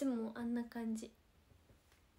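A young woman speaks softly and close into a microphone.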